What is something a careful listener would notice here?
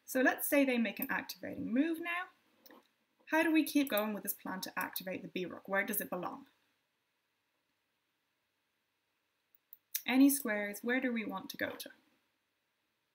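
A young woman speaks calmly and clearly into a close microphone, with pauses.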